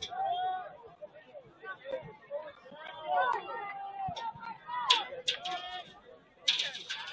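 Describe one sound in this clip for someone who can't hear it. Spectators shout and cheer from the sidelines outdoors.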